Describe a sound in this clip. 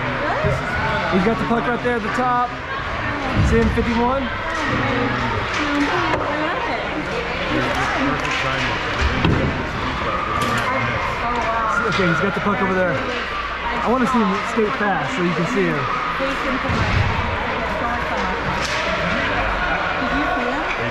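Young children shout and chatter in a large echoing rink.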